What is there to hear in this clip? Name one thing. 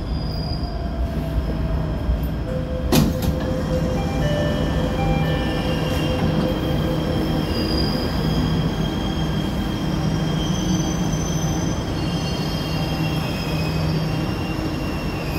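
A train hums steadily while standing.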